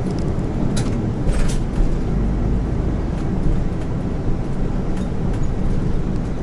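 A bus body rattles and clatters over the road.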